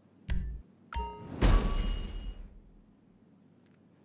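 A loud whooshing chime sounds, then fades.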